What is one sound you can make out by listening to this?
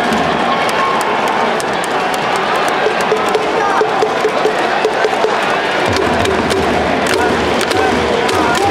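A large stadium crowd cheers and chants loudly.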